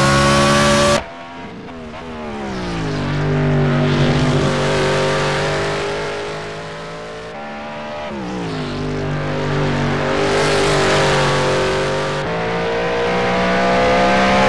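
A racing car engine revs up and down as it passes at a distance, shifting through gears.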